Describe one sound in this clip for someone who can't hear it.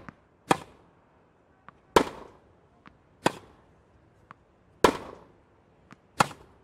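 A tennis ball is struck hard with a racket, back and forth in a steady rally.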